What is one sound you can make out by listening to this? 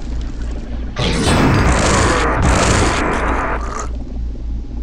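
A nail gun fires in a rapid clatter.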